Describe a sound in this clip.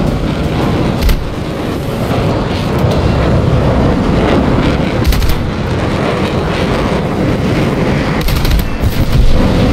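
Cannons fire in short bursts.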